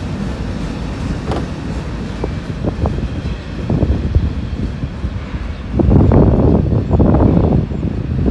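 A freight car rumbles slowly along street tracks nearby.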